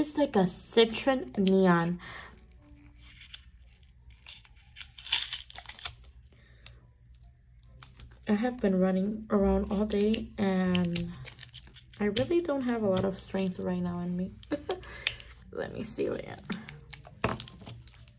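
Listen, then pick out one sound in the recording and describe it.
Sticky tape crackles as it is peeled off a roll.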